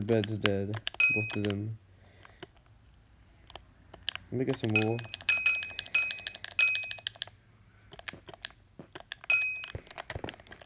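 Short bright chimes ring out several times in a row.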